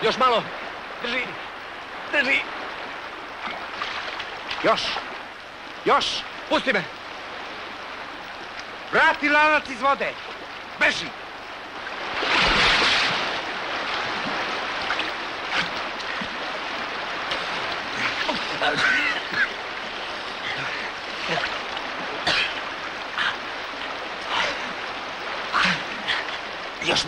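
A man shouts urgently.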